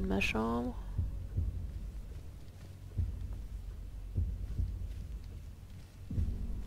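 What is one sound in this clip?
Footsteps thud softly on a carpeted floor.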